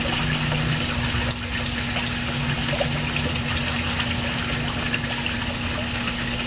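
A stream of water splashes and churns into a pond.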